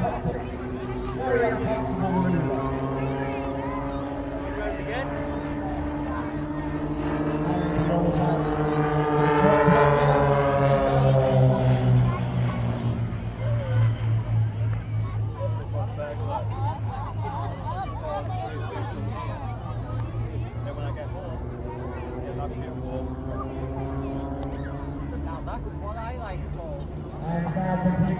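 Small propeller planes drone loudly overhead, their engine pitch rising and falling as they swoop past.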